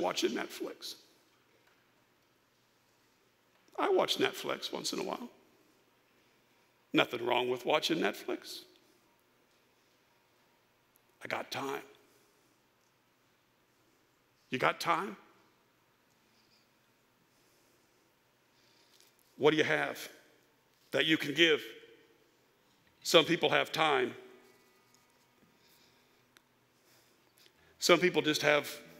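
A middle-aged man speaks with animation through a microphone, in short phrases with long pauses.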